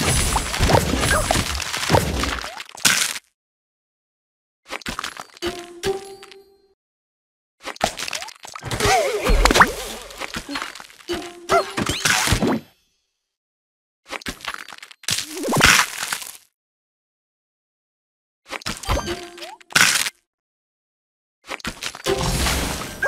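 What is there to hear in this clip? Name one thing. Bright game chimes and pops sound in short bursts as pieces burst.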